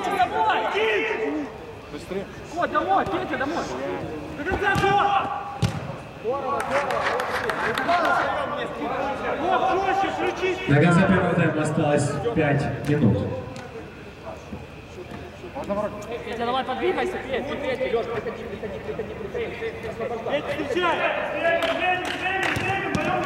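A football is kicked, thudding in a large echoing dome.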